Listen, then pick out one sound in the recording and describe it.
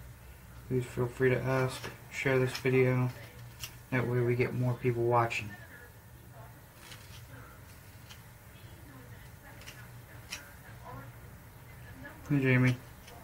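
A man speaks calmly and close by, in short phrases.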